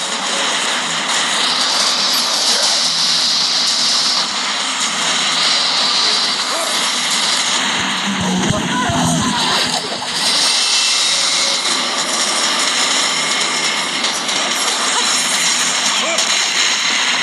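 Energy blasts crackle and boom.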